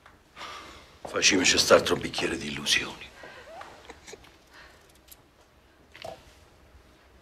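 An older man speaks with animation.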